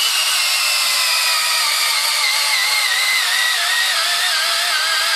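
A cordless drill whines as it bores into a log, its pitch slowly dropping.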